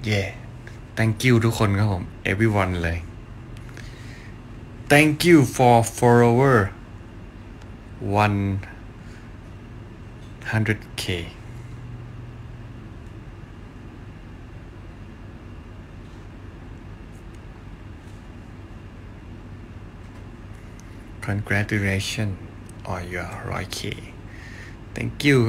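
A young man talks casually and close to a phone microphone, in short bursts with pauses.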